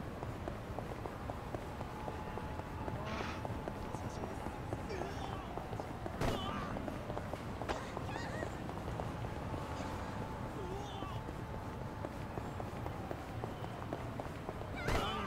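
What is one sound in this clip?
Quick footsteps run across pavement.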